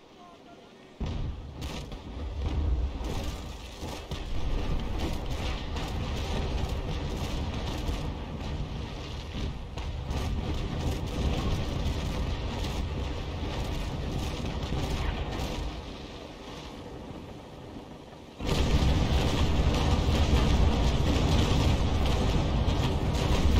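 Cannons boom in repeated heavy volleys.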